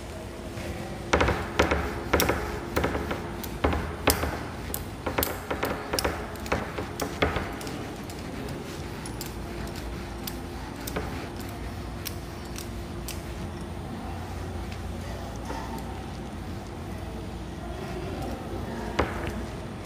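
A duster rubs and knocks against a whiteboard.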